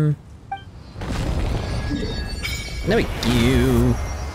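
A shimmering magical chime swells up.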